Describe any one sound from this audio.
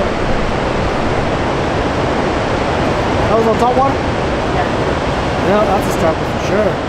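Water roars steadily as it pours through a dam's spillway.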